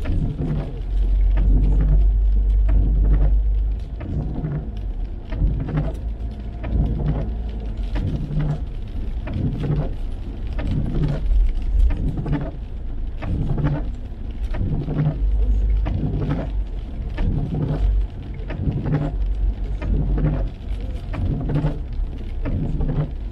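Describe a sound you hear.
Rain patters on a car's windscreen.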